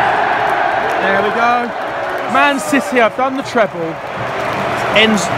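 Nearby fans sing and chant loudly.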